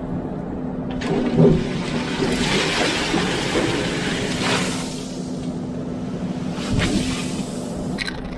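Gravel crunches and scrapes as a loader bucket scoops into a pile.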